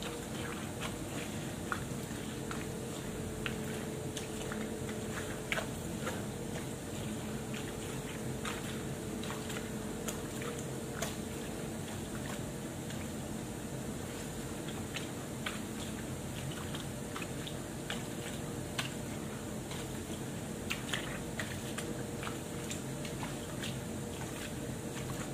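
Wet cloth rubs and squelches as clothes are scrubbed by hand.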